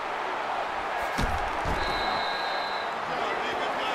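Players collide in a tackle with a thud.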